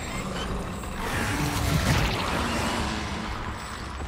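Rubble crashes and tumbles nearby.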